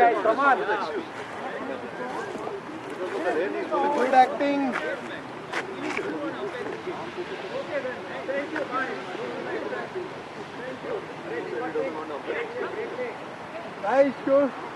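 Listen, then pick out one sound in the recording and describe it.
Several men talk and call out to each other at a distance.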